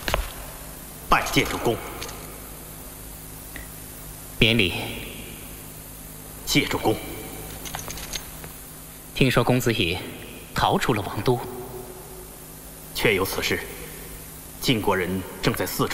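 A man speaks calmly and gravely, close by.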